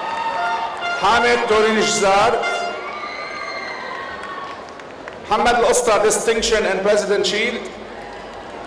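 A man reads out names through a loudspeaker in a large echoing hall.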